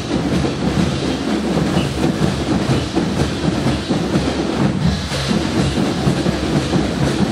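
A marching band plays brass and drums outdoors.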